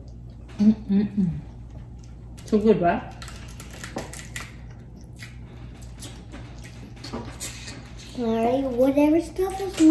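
Crawfish shells crack and snap between fingers.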